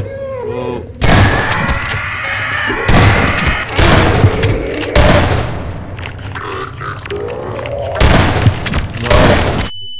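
Shotgun blasts boom loudly, echoing.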